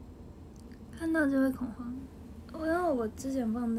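A young girl speaks softly and playfully close to the microphone.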